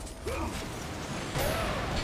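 Fiery explosions burst and crackle.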